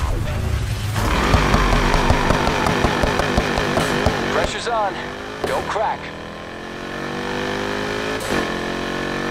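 A car engine revs loudly and roars away.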